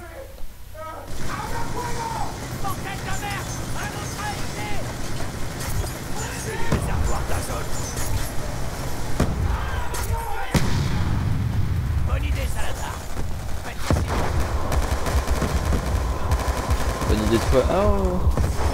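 Gunfire rattles in rapid bursts, echoing in a large hall.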